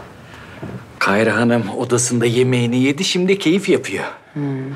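A man speaks warmly and calmly close by.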